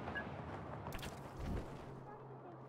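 A parachute snaps open with a sharp flap.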